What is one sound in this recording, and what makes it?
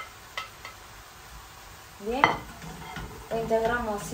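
A plate is set down on a stone counter.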